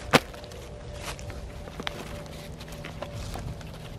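Sticks knock and rustle as they are handled.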